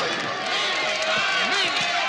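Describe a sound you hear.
A young man shouts with excitement.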